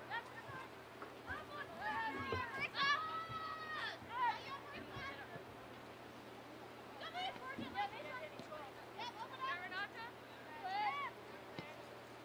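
Young women shout to each other outdoors across an open field.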